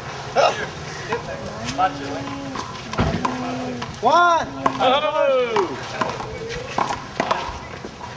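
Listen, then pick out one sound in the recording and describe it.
Young men call out and shout to each other outdoors.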